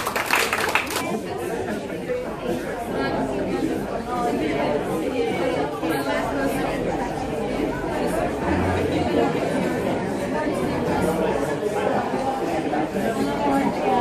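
A crowd of men and women chat and murmur nearby.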